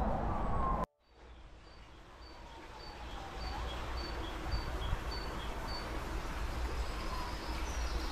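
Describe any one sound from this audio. Water trickles softly through a culvert.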